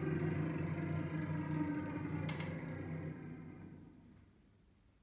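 A cello and a viola play a slow, sustained chord that fades away.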